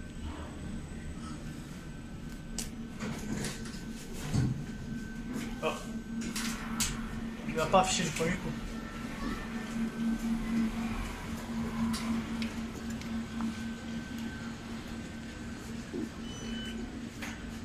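An elevator motor hums steadily.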